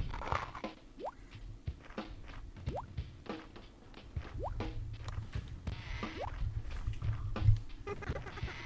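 Short rising electronic blips sound from a video game.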